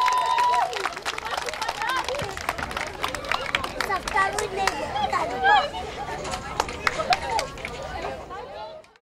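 Women and children chatter in a crowd.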